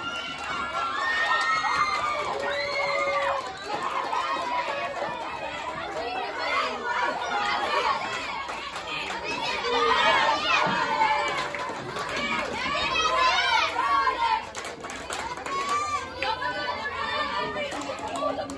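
Young female players shout and cheer from across an outdoor field.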